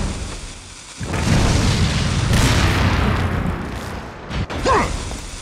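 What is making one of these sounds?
A fire bursts up and roars loudly.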